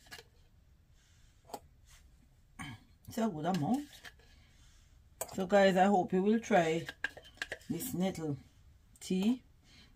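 A metal spoon clinks against a glass jar.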